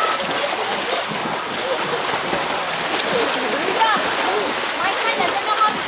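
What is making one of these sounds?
Water splashes as a swimmer kicks and strokes through a pool.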